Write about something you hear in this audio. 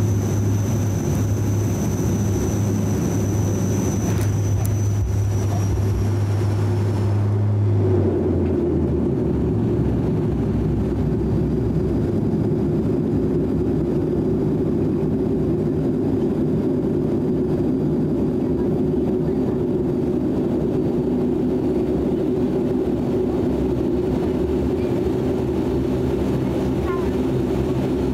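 Aircraft wheels rumble over the runway.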